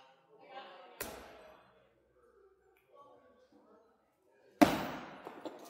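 An axe thuds sharply into a wooden target, ringing through a large echoing hall.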